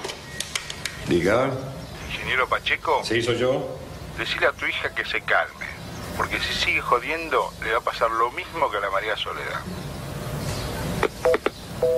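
An elderly man talks on a telephone in a low voice.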